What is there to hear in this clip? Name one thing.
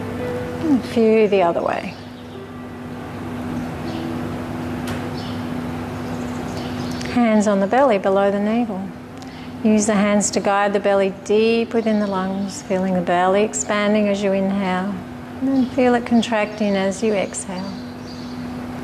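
A young woman speaks calmly and softly, close to a microphone.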